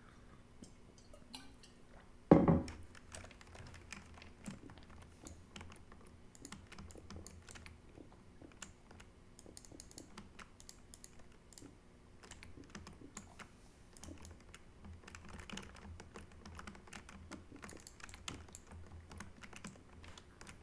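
Blocks are dug and placed with quick tapping clicks.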